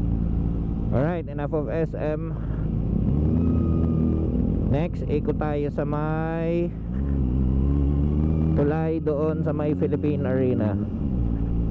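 A motorcycle engine revs in short bursts.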